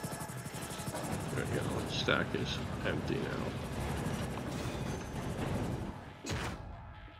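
A helicopter's rotor whirs and thumps loudly.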